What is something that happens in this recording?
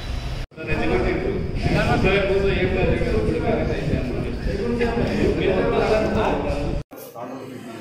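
A man speaks steadily into a close microphone.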